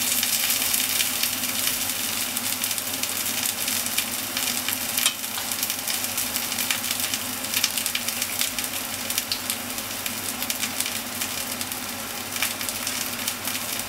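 A thin stream of liquid trickles into a jug.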